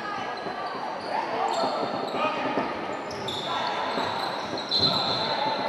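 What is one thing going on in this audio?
Spectators murmur and call out in the background.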